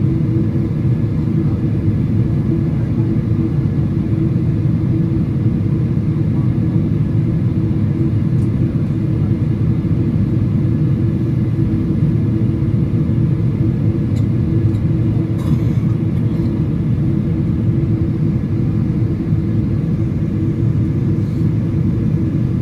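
A plane's engines roar in a steady, low drone inside the cabin.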